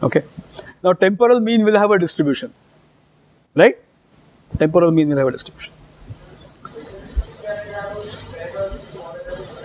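A middle-aged man speaks with animation through a clip-on microphone.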